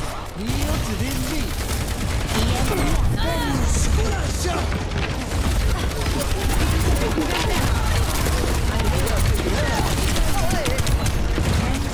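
Rapid gunfire crackles and pops throughout.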